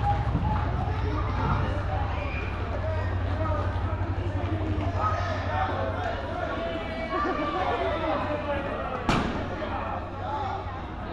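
Children shout and chatter throughout a large echoing hall.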